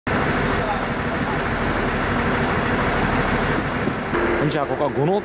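A diesel train engine idles with a steady low rumble.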